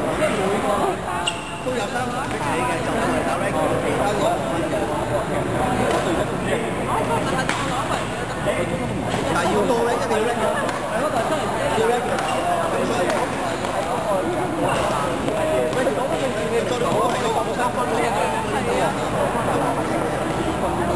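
Young men and women chatter and call out across a large echoing hall.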